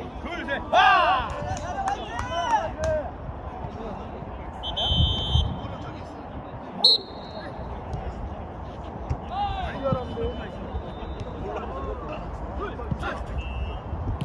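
Young men shout and call out to each other across an outdoor court.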